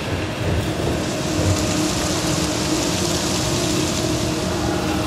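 A fire crackles and roars close by.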